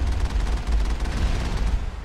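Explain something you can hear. A cannon shot explodes with a loud boom.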